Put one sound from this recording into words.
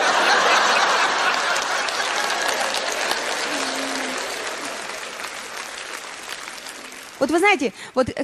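An audience applauds and cheers, then fades.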